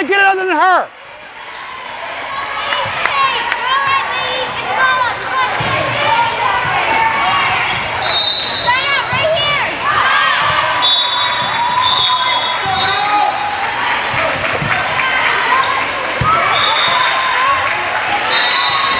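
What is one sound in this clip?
Sneakers squeak sharply on a court floor in a large echoing hall.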